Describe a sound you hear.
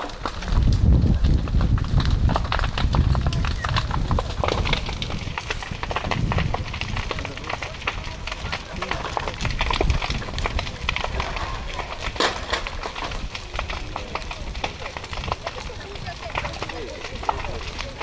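A grass fire crackles and pops.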